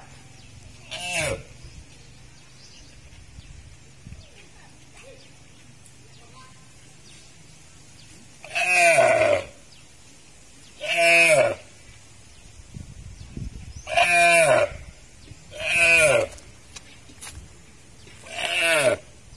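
A deer bleats loudly in high, wavering calls, close by.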